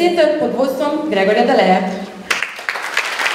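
A young woman sings into a microphone in a large echoing hall.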